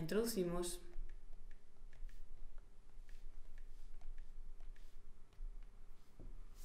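Fingertips tap lightly on a touchscreen.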